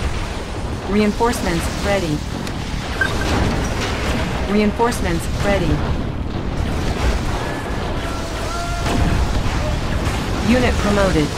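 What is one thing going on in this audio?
Gunfire crackles and explosions rumble in a battle.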